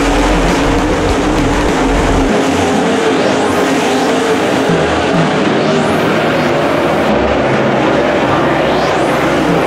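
Race car engines roar loudly as the cars speed past.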